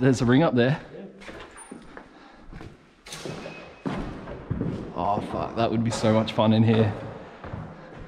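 A young man talks nearby in an echoing empty hall.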